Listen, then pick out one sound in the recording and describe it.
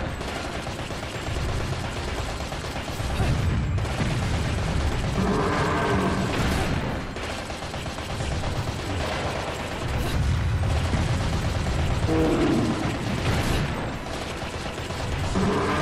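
Heavy blows land with loud metallic crashes.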